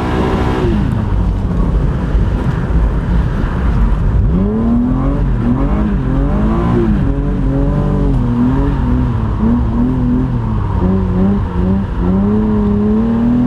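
Wind and road noise roar inside a car.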